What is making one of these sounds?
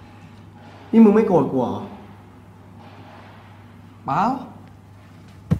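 A second young man asks a question nearby.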